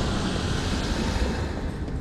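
A heavy blade swings with a whoosh.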